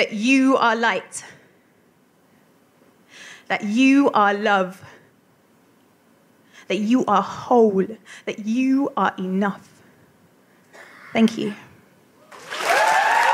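A woman speaks calmly close by, with pauses.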